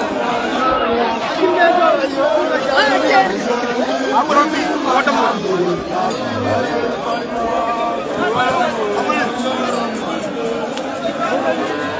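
Young men shout and call out close by.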